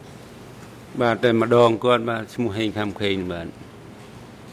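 A second man speaks briefly into a microphone.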